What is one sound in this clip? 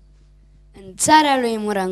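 A young boy sings loudly into a microphone.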